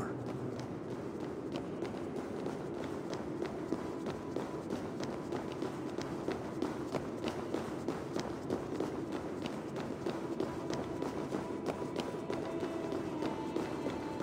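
Footsteps thud on stone at a steady pace.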